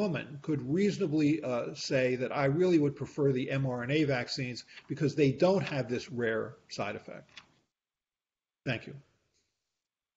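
An older man speaks calmly and clearly into a microphone over an online call.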